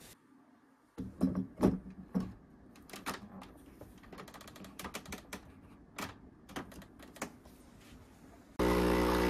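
A metal filter holder clanks and clicks as it locks into a coffee machine.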